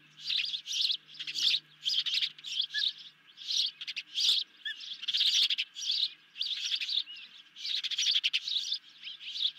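Young ospreys chirp shrilly in quick, repeated bursts.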